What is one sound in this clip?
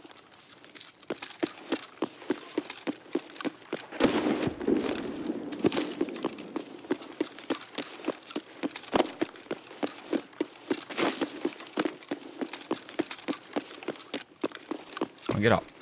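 Footsteps crunch steadily over gravel and grass.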